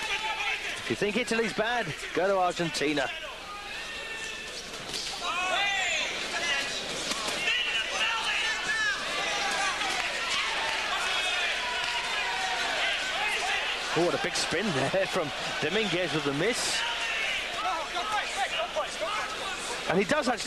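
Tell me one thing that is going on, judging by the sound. Gloved punches thud against bodies.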